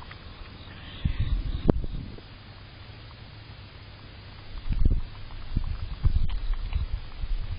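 A groundhog chews and munches on food close by.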